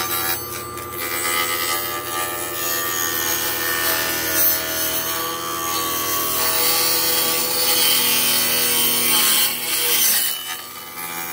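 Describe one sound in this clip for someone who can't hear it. A power saw whines steadily as it cuts through wood.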